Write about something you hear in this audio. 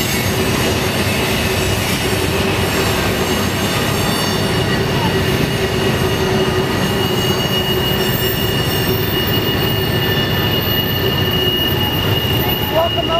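Steel wheels squeal and clatter on the track.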